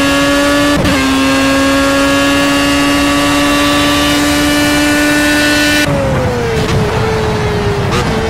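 A racing car engine screams at high, steady revs, then drops in pitch as the car slows.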